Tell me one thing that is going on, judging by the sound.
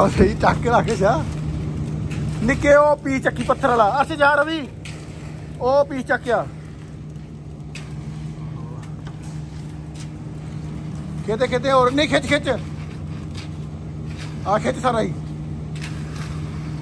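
A concrete mixer truck's engine rumbles outdoors.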